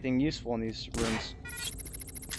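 A submachine gun fires a short burst.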